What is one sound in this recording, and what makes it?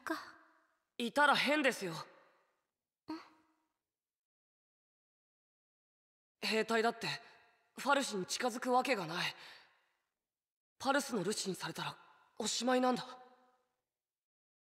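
A young boy speaks quietly and earnestly.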